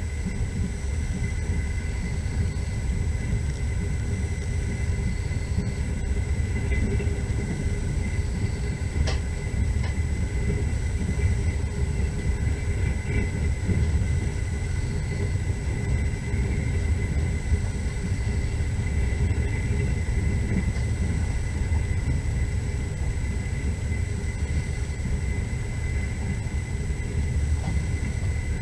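A vehicle rumbles steadily along at speed.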